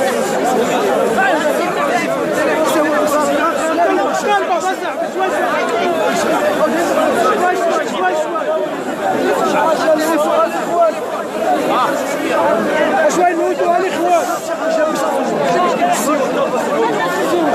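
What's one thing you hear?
An elderly man speaks with animation into a handheld microphone, close by.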